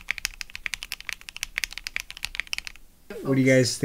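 Keys clack rapidly as someone types on a mechanical keyboard.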